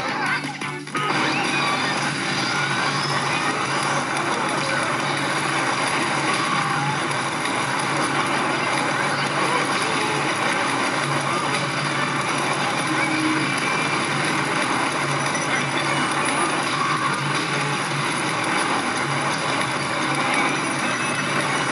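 A game wave rushes and roars.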